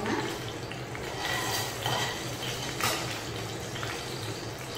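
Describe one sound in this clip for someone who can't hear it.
A metal ladle scrapes and clinks against a pan.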